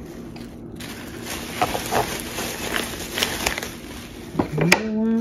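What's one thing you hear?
Bubble wrap crinkles and rustles as hands handle it.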